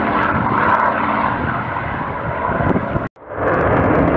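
Piston-engined propeller fighters drone overhead.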